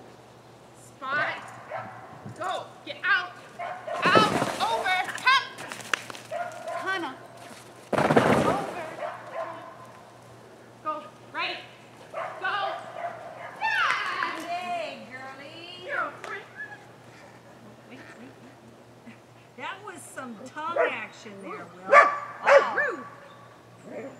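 A woman calls out with animation to a dog, outdoors.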